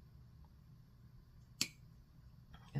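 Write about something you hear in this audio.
A paintbrush clinks against a jar.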